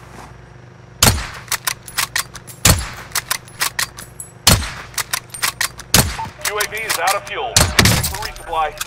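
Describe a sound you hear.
A rifle fires single loud shots, one every second or two, each trailing a short echo.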